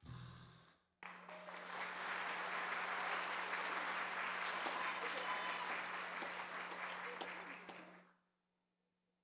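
An audience claps loudly in a large hall.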